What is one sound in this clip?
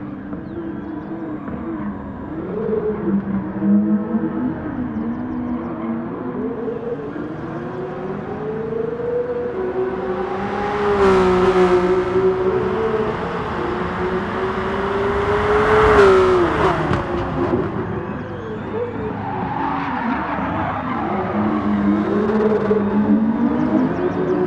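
Racing car engines roar and change pitch as the cars speed past.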